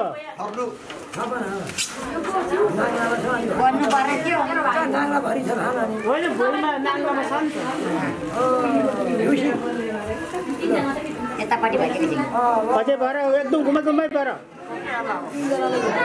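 Several women and men talk and chatter at once close by.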